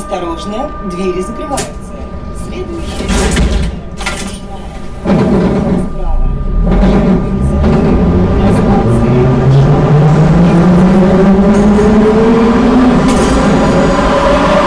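A subway train rumbles along the rails through a tunnel.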